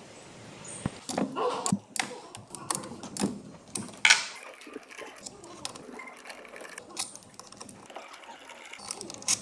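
Metal tools clink and knock against an engine.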